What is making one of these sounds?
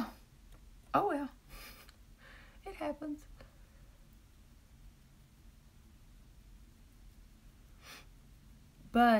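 A woman speaks calmly and close by, in short bursts.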